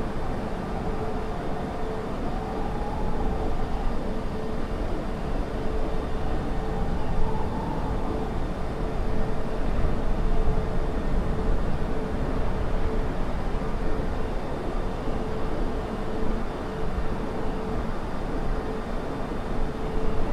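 Jet engines roar steadily with a low rumble.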